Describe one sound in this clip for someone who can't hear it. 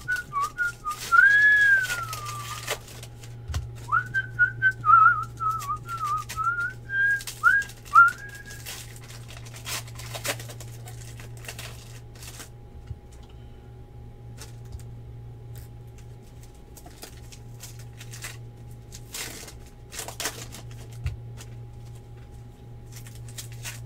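Foil card packs crinkle and rustle in someone's hands.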